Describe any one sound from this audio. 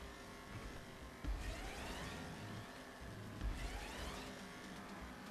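A car engine revs hard and climbs in pitch again and again as it speeds up.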